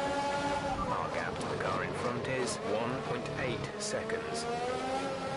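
Tyres squeal as a racing car brakes hard.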